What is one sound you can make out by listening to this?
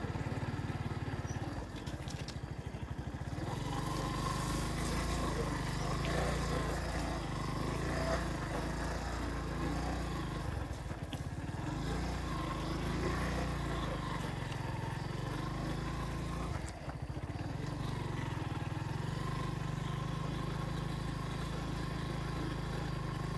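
A motorcycle engine rumbles steadily close by.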